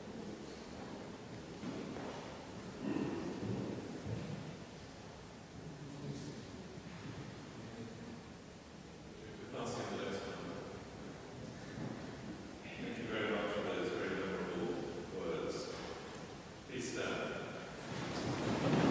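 A man speaks through a loudspeaker in a large echoing hall.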